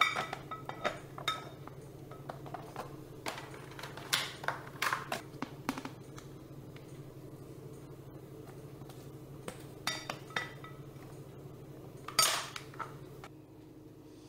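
Plastic lid clips click and snap.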